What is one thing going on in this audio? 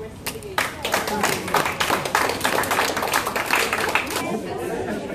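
A small crowd claps and applauds.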